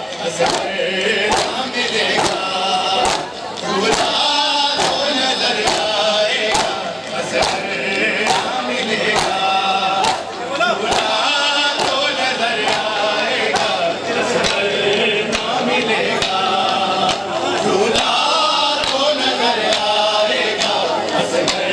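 Many men beat their chests in a steady, fast rhythm.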